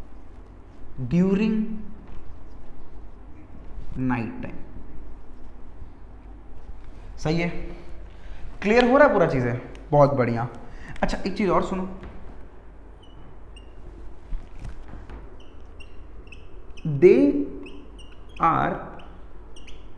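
A man speaks calmly in short bursts, in a slightly echoing room.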